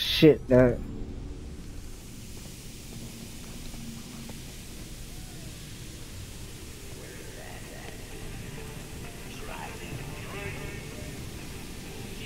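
Footsteps tread on a metal floor.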